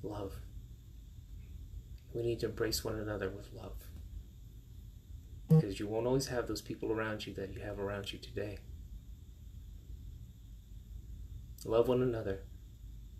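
A middle-aged man talks calmly and close to the microphone, with pauses.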